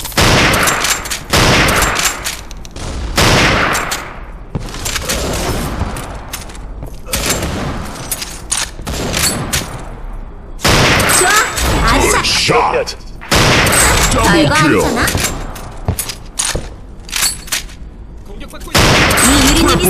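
A bolt-action rifle fires loud, sharp shots.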